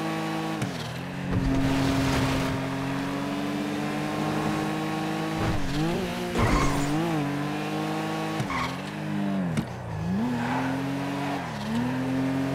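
Tyres screech on asphalt in the corners.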